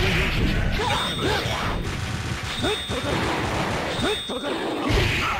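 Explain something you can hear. Punches and energy blasts from a fighting game crack and whoosh in quick bursts.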